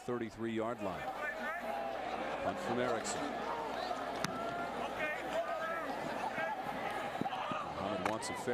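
A large stadium crowd cheers and roars.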